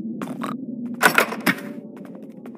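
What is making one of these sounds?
A door opens with a clunk.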